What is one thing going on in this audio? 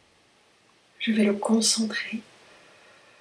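A woman speaks briefly, close to the microphone.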